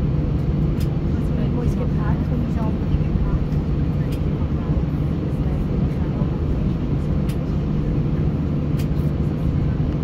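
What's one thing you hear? Jet engines roar loudly as an airliner speeds down the runway.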